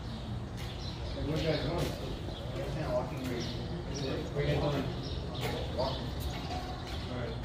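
A young man calls out to others while walking up.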